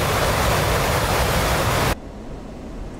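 A jet engine roars loudly with rushing wind.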